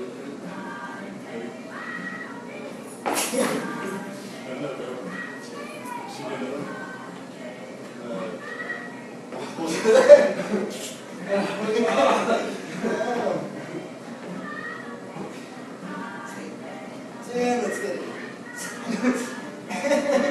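Two men talk and laugh with animation nearby.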